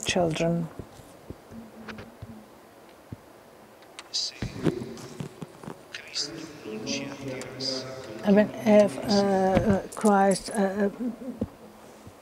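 A middle-aged man speaks calmly into a microphone, reading out with pauses.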